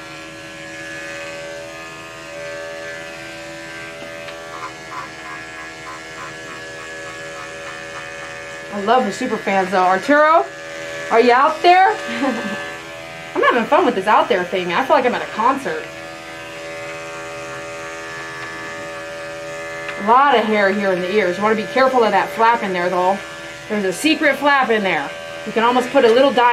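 Electric clippers hum steadily close by.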